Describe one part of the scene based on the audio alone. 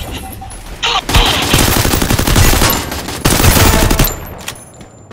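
An automatic rifle fires bursts.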